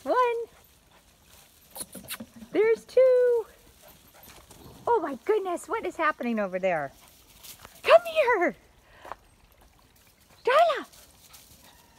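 A young dog yelps and whines in short high-pitched cries, outdoors.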